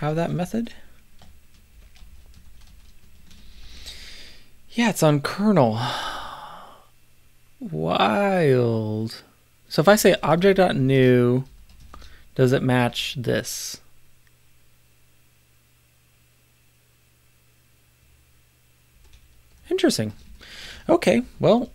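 A middle-aged man talks calmly into a nearby microphone, pausing now and then.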